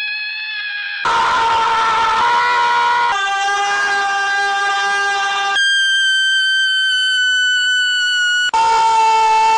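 A sheep bleats loudly in long, drawn-out cries.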